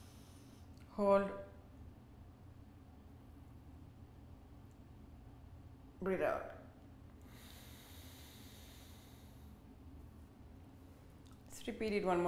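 A young woman speaks calmly in short phrases, close by.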